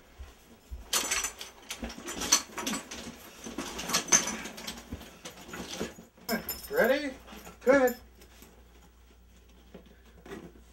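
A suitcase rustles and thumps as it is handled.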